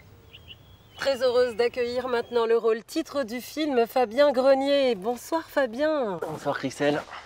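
A woman presenter speaks with animation through a television speaker.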